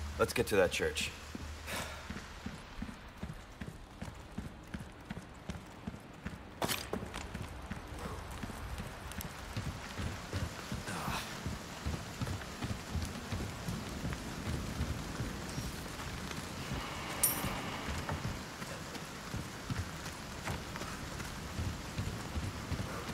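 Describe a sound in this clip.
Footsteps thud steadily on wooden boards and stone.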